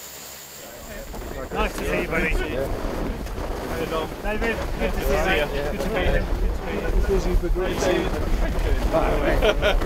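Men talk with one another close by.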